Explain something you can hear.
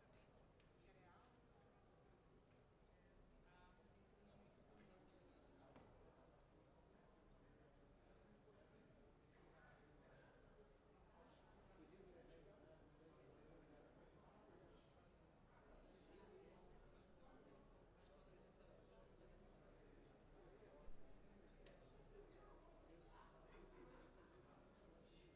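A group of men and women murmur and talk over each other at a distance in a large echoing hall.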